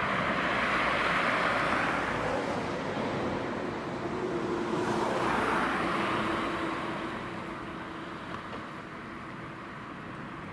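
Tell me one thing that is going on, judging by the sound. A bus engine hums as it approaches.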